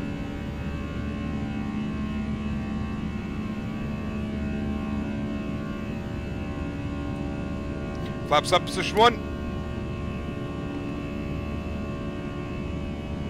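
A jet engine drones steadily inside a cockpit.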